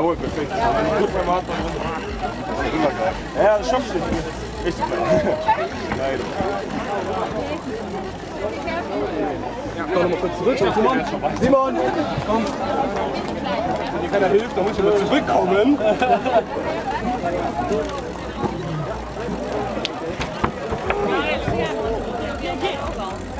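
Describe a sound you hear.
A crowd of young men and women talk and cheer outdoors.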